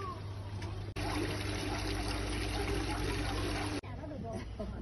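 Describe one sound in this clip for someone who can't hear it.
Water splashes steadily from a small fountain.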